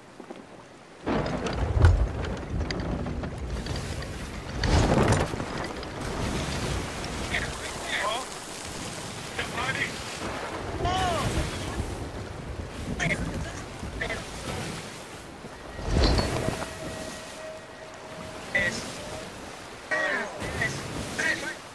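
Rough sea waves rush and splash around a ship.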